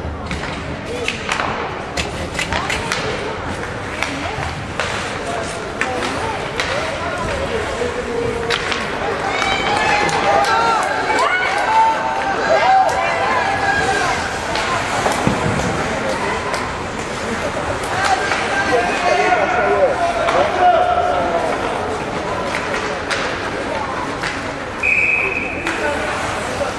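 Hockey sticks click and knock against a puck.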